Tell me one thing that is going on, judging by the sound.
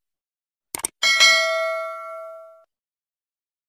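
A bell chimes and rings out.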